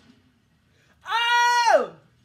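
A young man shouts loudly with excitement.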